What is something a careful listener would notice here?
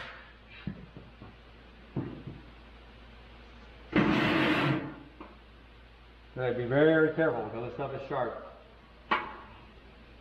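A sheet of metal scrapes and rattles.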